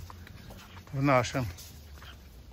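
A small dog whines close by.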